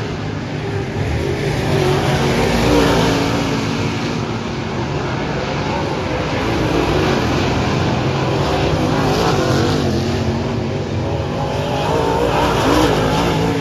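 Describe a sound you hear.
Engines rev up and down in rising and falling whines.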